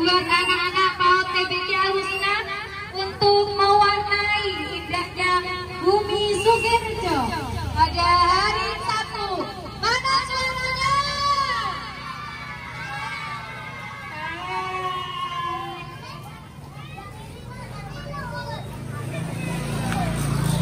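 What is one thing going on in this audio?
A group of young children sing together loudly outdoors.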